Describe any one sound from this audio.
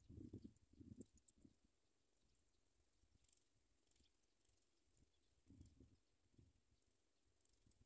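Baby birds cheep faintly and thinly.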